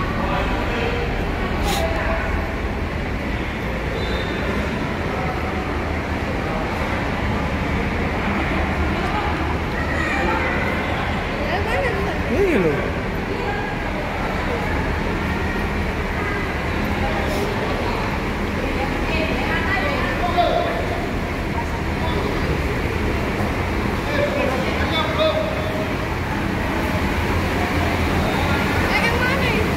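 Bus engines hum low and steady.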